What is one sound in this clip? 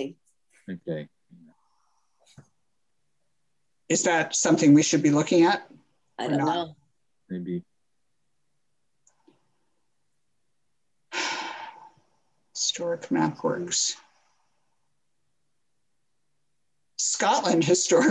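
An older woman speaks calmly into a microphone, in short phrases with pauses.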